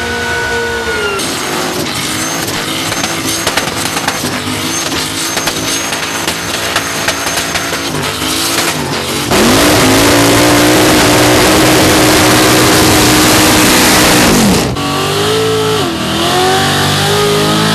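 A car engine roars loudly at high revs, rising and falling.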